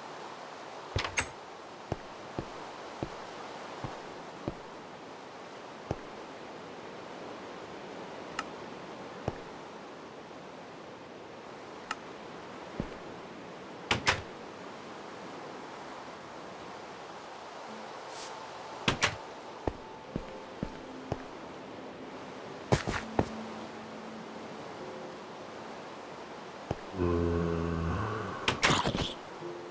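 Short clicks and taps sound now and then.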